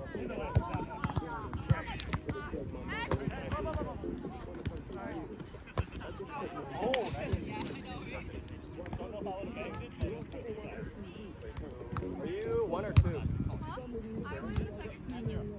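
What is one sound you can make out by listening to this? Players hit a volleyball with sharp slaps.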